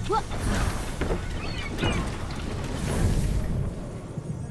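Wings beat with a whoosh as a figure glides down.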